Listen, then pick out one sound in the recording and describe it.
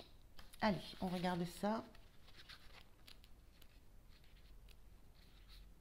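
Paper pages of a small book rustle as they are flipped.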